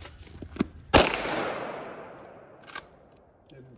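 A pistol fires a single loud shot outdoors, echoing through the woods.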